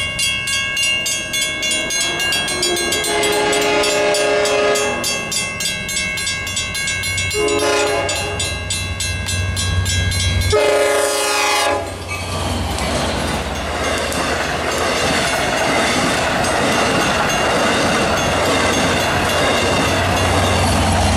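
A railroad crossing bell rings rapidly and steadily.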